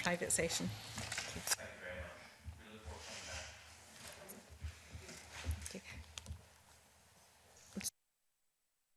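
A man talks quietly at a distance, heard through a microphone.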